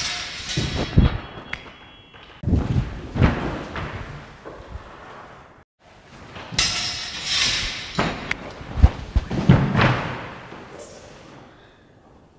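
Bodies thud and scuffle on a wooden floor.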